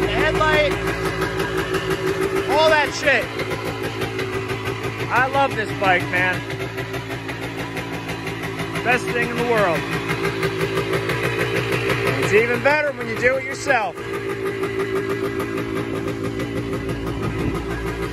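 A two-stroke single-cylinder dirt bike idles high.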